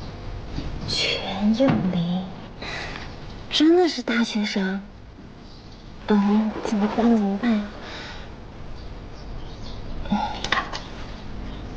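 A young woman speaks softly to herself, close by.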